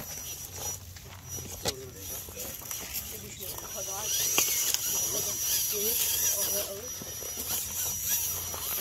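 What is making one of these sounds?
An electric motor of a radio-controlled rock crawler whines as it climbs.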